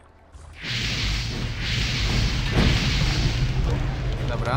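Fire blasts roar and whoosh in quick bursts.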